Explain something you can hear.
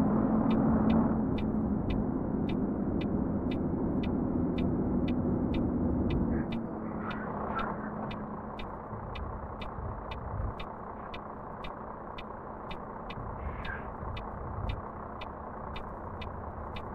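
A truck engine rumbles steadily, then grows quieter.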